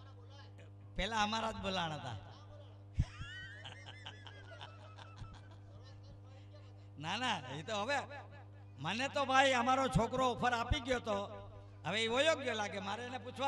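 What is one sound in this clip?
An elderly man speaks with animation through a microphone and loudspeakers.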